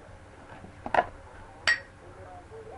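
A glass knocks against a hard surface.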